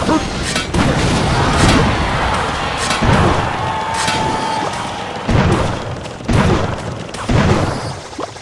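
Cartoonish battle sound effects clash and thud in a mobile game.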